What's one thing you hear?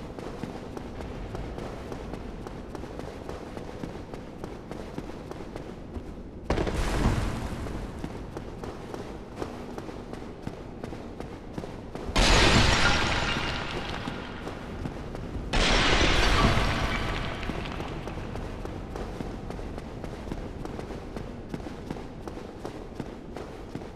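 Armoured footsteps run steadily on stone.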